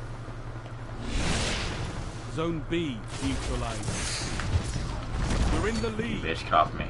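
Gunfire and explosions burst from a video game.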